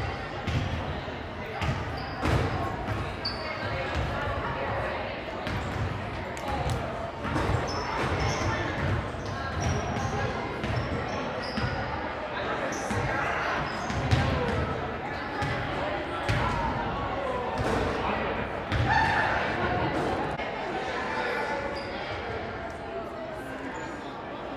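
Basketballs bounce on a hard floor with thuds that echo in a large hall.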